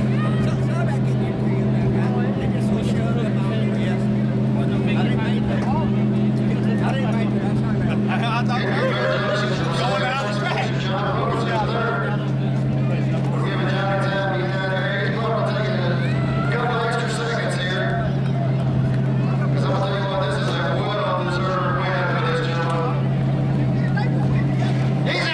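A race car engine idles with a steady low rumble.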